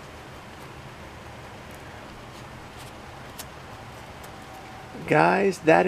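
A deck of cards taps down softly on a cloth mat.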